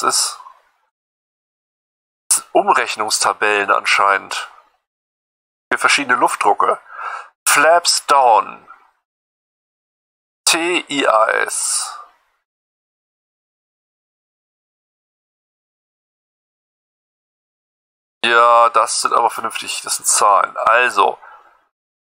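A man talks into a close microphone in short, calm bursts with long pauses.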